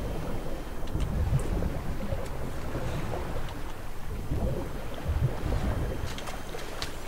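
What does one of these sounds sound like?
Water splashes and churns.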